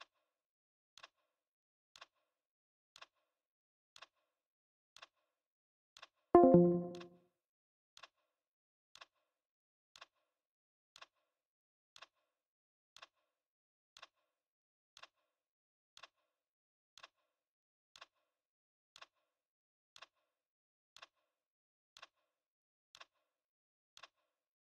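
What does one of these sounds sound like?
A soft game tick sounds once every second.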